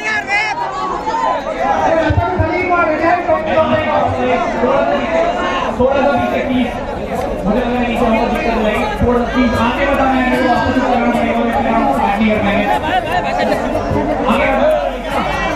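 A large crowd cheers and shouts nearby.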